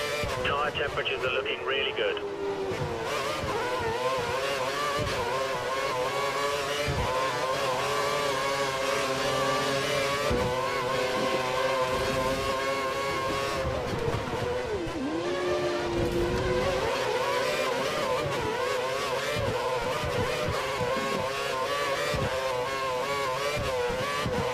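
A racing car engine whines loudly, rising and falling in pitch as it revs and shifts gears.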